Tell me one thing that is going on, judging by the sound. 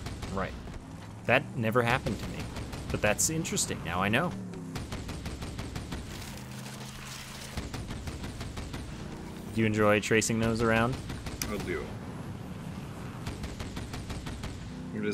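A laser weapon fires with a continuous buzzing hum.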